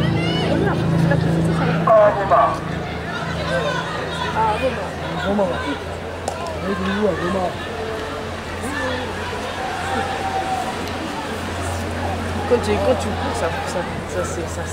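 A crowd of spectators chatters and calls out at a distance outdoors.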